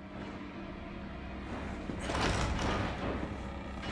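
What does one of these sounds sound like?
Double doors swing open.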